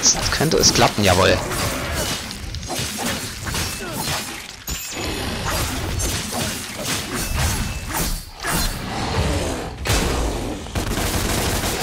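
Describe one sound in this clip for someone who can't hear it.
Blades slash and clang in rapid hits.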